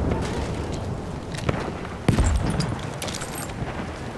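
Metal gun parts click and rattle as a rifle is picked up.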